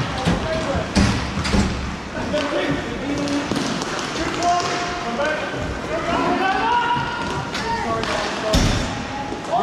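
Hockey sticks clack sharply against a ball.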